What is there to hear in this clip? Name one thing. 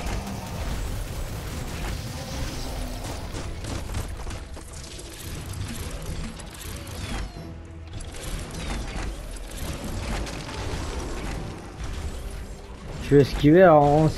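Explosions burst and fire crackles.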